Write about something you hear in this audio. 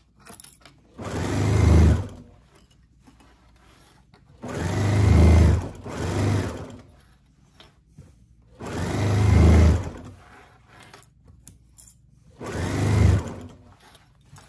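A sewing machine stitches in short, fast bursts.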